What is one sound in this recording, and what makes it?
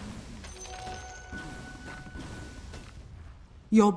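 Short electronic chimes and battle effects ring out from a game.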